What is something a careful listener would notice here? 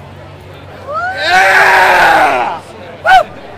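A man shouts.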